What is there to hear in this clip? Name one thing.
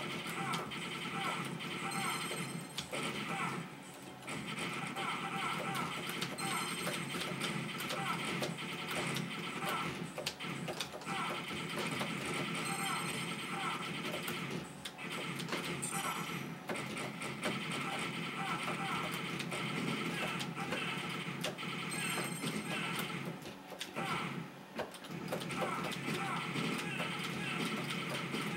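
An arcade game plays electronic music.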